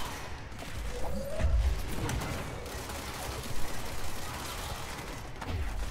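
Energy blasts crackle and whoosh in rapid bursts.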